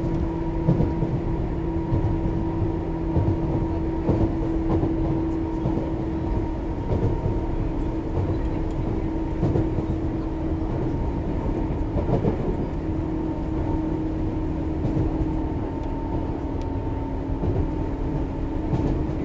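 An electric train hums steadily close by.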